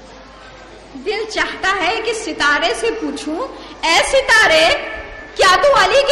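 A woman speaks with feeling into a microphone, heard through a loudspeaker in an echoing room.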